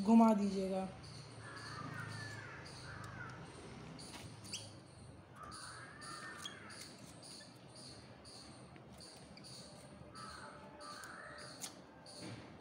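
Pliers twist a thin wire with soft scraping and creaking.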